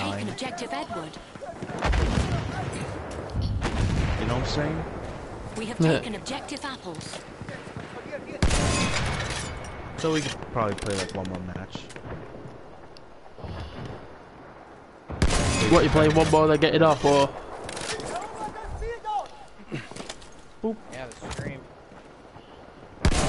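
Gunshots crack loudly in bursts.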